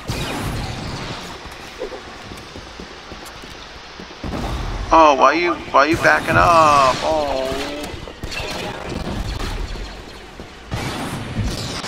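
Laser blasters fire sharp zapping shots.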